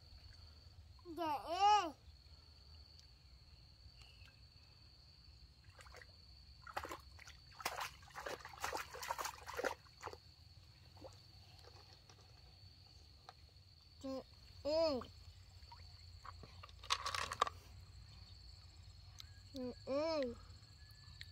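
A toddler calls out in short high cries.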